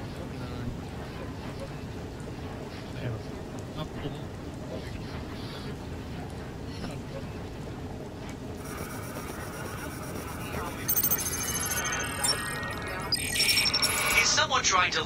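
Radio static hisses and crackles steadily.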